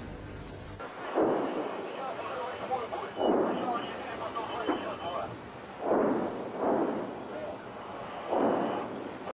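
Distant explosions boom one after another, echoing across open ground.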